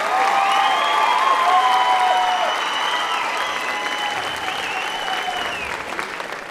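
A crowd cheers and shrieks loudly in a large echoing hall.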